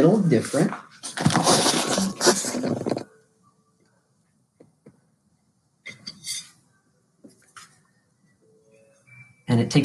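Fingers rub and press paper against a glass bottle.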